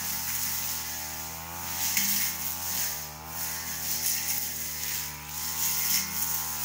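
A brush cutter engine whines steadily nearby, its pitch wavering up and down.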